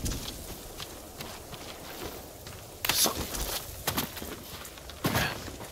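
Footsteps thud on soft ground.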